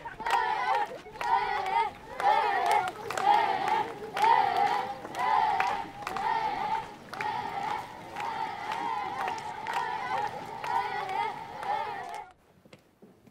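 A crowd of villagers sings loudly outdoors.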